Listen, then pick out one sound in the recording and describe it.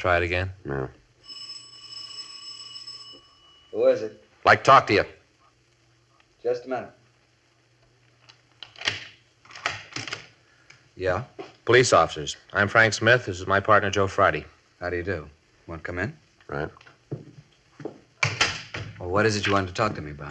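A man speaks calmly and clearly, as over an old radio broadcast.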